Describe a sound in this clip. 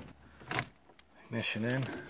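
A car's ignition key clicks as it turns.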